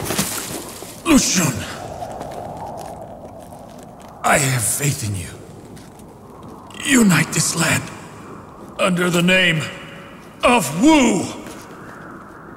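A man speaks in a strained, forceful voice up close.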